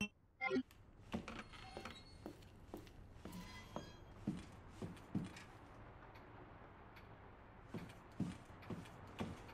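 Footsteps walk slowly.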